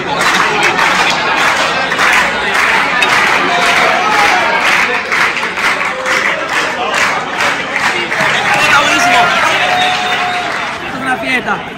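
A large crowd sings and chants loudly in an echoing hall.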